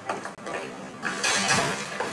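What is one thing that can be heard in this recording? A person thuds to the ground after a collision.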